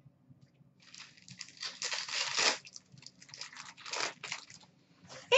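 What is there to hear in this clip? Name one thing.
A plastic card wrapper crinkles and tears close by.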